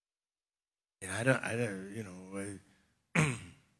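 A man speaks calmly into a microphone, heard over a loudspeaker.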